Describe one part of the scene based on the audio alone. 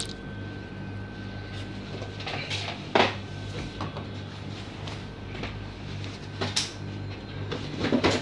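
A plastic bottle is handled with light clicks and knocks.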